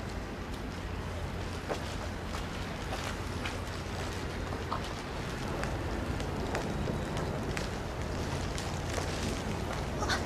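Plastic shopping bags rustle.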